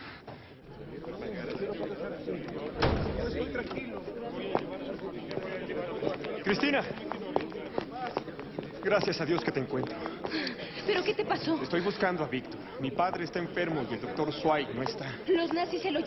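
A crowd of young people chatters in an echoing hall.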